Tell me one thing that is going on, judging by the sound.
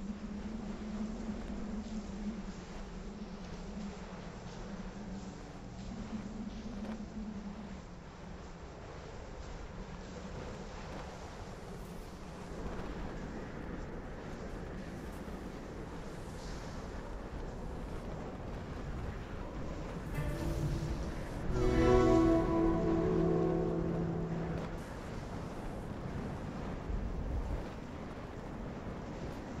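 Snow hisses softly as something slides down a slope.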